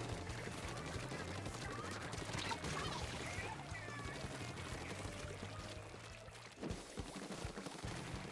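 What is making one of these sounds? Game weapons fire and splatter in rapid bursts.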